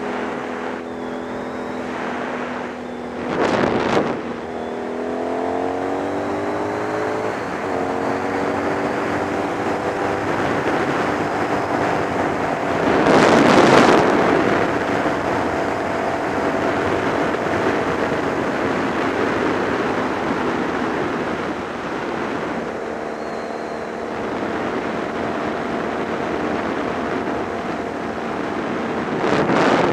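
A motorcycle engine hums steadily and shifts pitch as it speeds up and slows.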